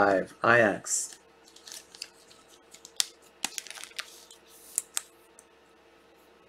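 Trading cards rustle and click as they are handled.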